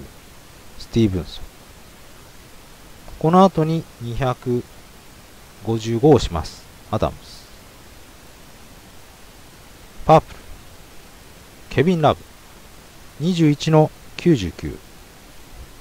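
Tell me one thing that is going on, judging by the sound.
A young man speaks in short bursts into a close microphone.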